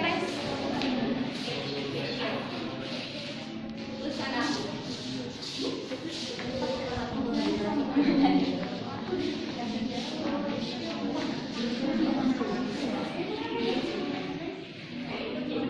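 Young women speak and call out with animation in a room with a slight echo.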